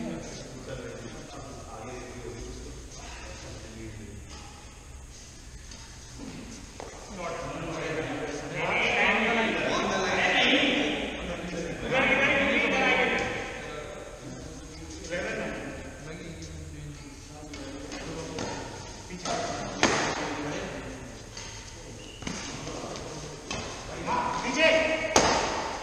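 Badminton rackets strike a shuttlecock in an echoing hall.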